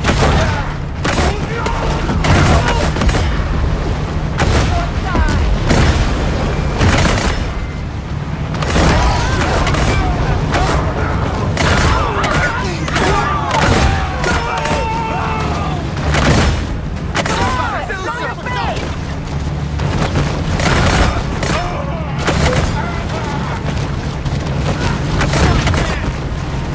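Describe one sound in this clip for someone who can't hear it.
Water splashes and churns as a large animal thrashes through waves.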